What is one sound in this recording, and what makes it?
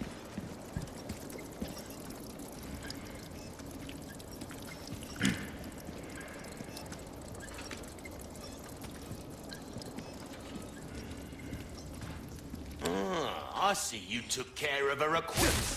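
Footsteps tread on a stone floor in an echoing tunnel.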